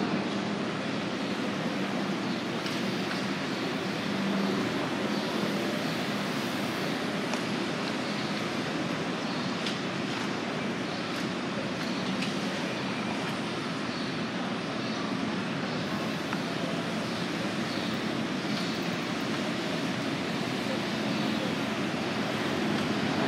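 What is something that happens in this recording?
Cars drive past outdoors, with a steady rush of road traffic.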